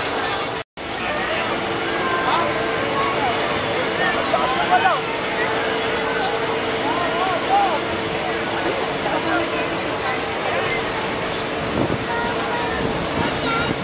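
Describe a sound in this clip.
A crowd of young people chatters outdoors, many voices overlapping at a distance.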